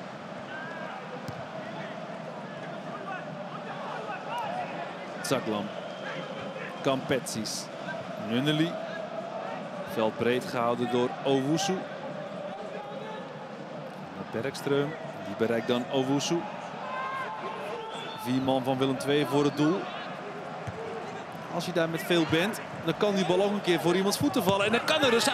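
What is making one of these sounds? A football is kicked with sharp thuds now and then.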